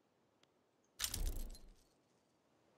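A deep booming sound effect plays.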